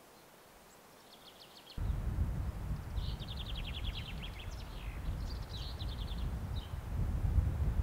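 A small bird chirps in quick trills.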